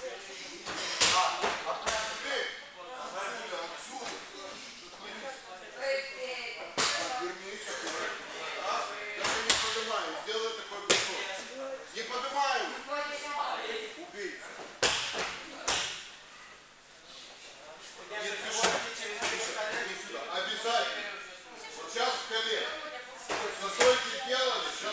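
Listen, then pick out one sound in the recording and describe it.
Bodies thud onto mats in a large echoing hall.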